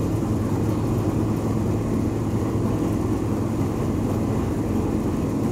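Wet hides flop and slap against the machine.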